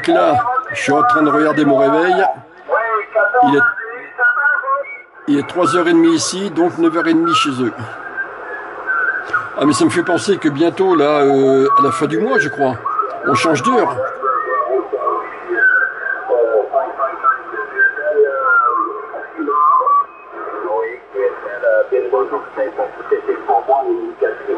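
A man speaks through a radio loudspeaker.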